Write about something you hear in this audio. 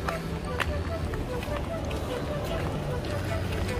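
Car engines hum as traffic passes on the street.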